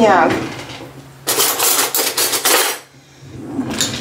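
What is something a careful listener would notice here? Metal cutlery rattles in a drawer.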